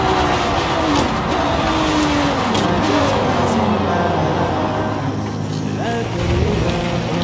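A racing car engine roars, its pitch dropping in steps as the car brakes and slows.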